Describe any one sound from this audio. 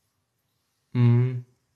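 A young man says a short word close to the microphone.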